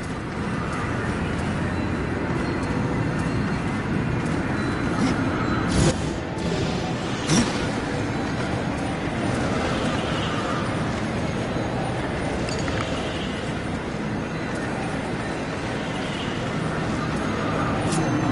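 An electric portal hums and crackles.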